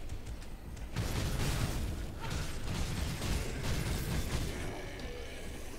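Magic blasts crackle and roar in a fight.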